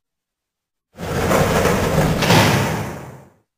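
A metal mesh gate rattles as it slides open.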